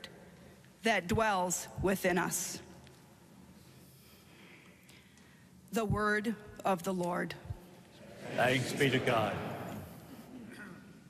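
A middle-aged woman reads aloud through a microphone in a large echoing hall.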